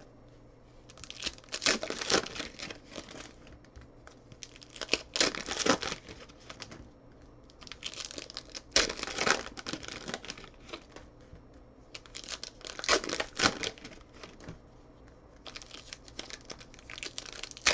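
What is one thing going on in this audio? Foil card packs crinkle and tear as hands rip them open.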